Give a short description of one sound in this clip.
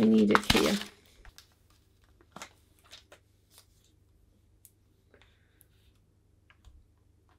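Thin plastic film crinkles and rustles softly as it is peeled away.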